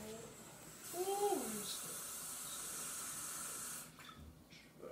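Water runs from a tap into a sink.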